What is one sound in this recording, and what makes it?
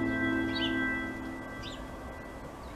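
A crow caws nearby.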